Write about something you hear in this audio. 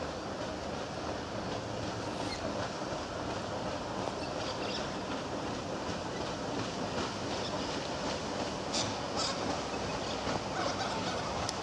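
A paddle steamer's wheel churns the water steadily nearby.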